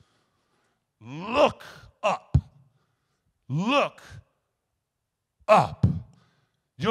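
A man preaches emphatically into a microphone in short, forceful bursts.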